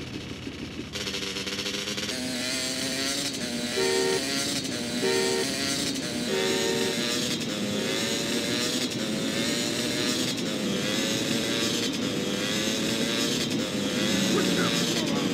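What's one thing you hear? A motorcycle engine hums and revs steadily close by.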